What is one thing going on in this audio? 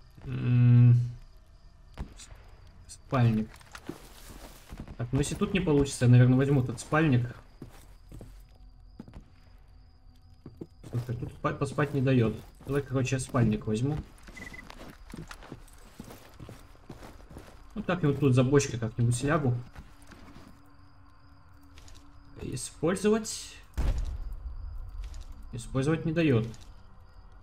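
A man talks calmly into a close microphone, in bursts.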